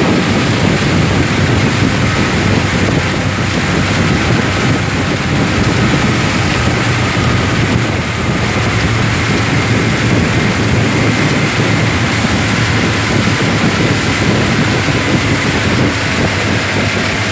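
A boat's outboard engine roars steadily.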